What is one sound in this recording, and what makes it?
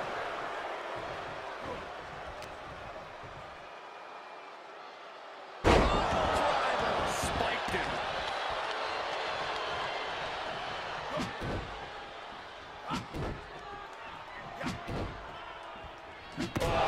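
A large crowd cheers and roars throughout.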